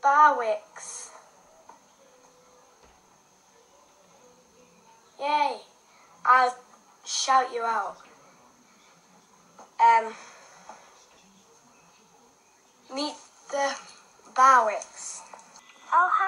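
A young girl talks brightly through a phone's speaker, in short bursts.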